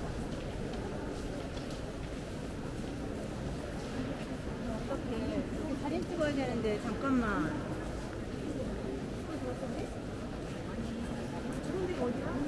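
A crowd of visitors murmurs and chatters in a large echoing hall.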